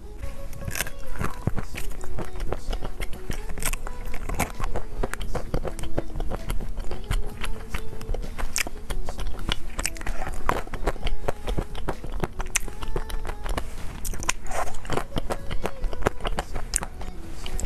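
A young woman chews noisily close to a microphone.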